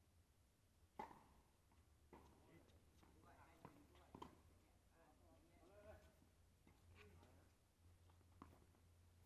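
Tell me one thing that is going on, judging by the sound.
Tennis rackets hit a ball with sharp pops.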